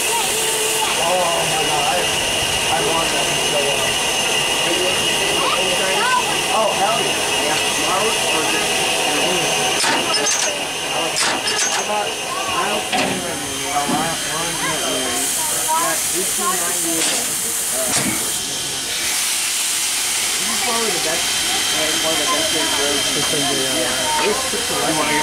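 A steam locomotive hisses steadily as it stands idling close by.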